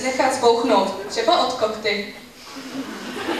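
A woman speaks with animation through a microphone in a large hall.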